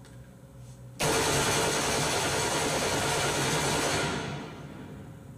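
A rifle fires a rapid burst of shots with a long echo.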